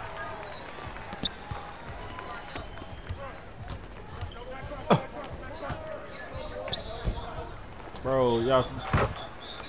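A basketball bounces on a court.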